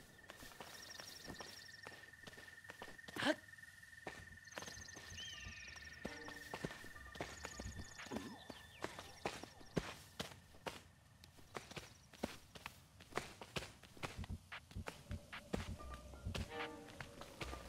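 Running footsteps rustle through tall grass.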